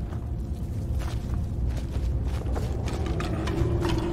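Footsteps crunch over leaves and dirt.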